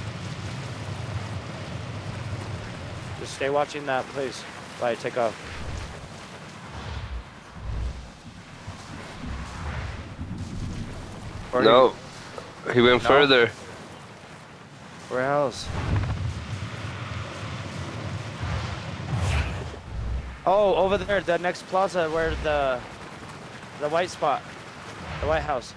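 A steady whooshing rush of air accompanies fast movement.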